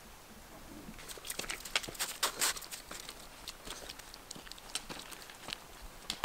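A dog's paws crunch and patter through snow.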